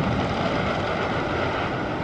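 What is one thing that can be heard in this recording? A roller coaster train rumbles along wooden tracks in the distance.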